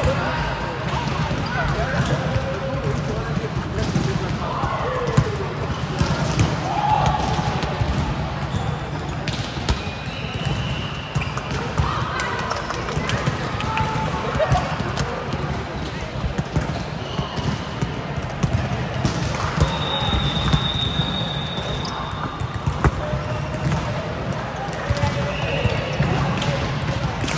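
Balls thump on a court in a large echoing hall.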